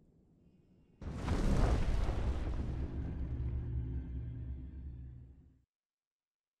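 A heavy stone platform grinds and rumbles as it sinks.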